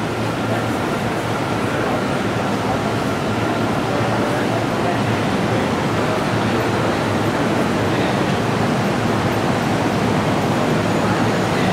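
A train rolls slowly into a station with a low rumble.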